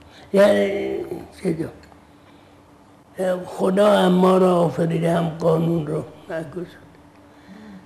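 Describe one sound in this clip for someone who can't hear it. An elderly man speaks slowly and calmly into a close microphone.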